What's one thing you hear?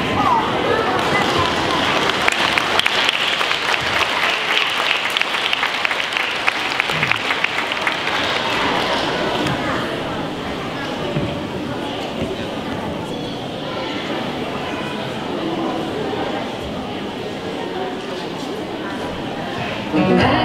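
Children's feet shuffle and tap on a wooden floor.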